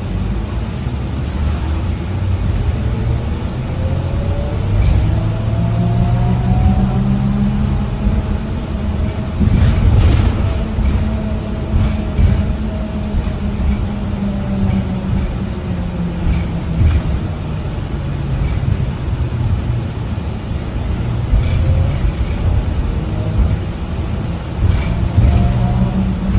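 A bus engine hums and whines steadily while driving.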